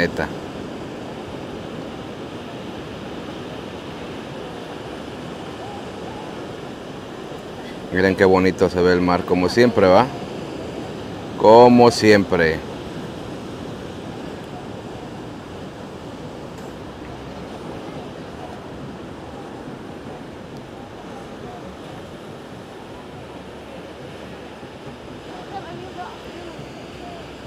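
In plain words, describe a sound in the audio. Waves crash and roll onto a shore.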